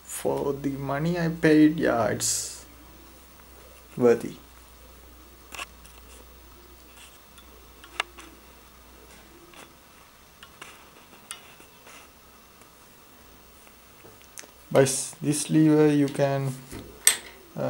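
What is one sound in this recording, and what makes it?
Plastic parts click and rattle as a tripod is handled.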